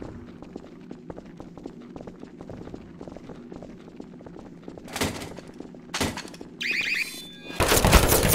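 Footsteps thud on stairs.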